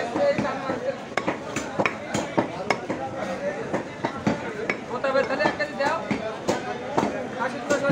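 Several men talk nearby.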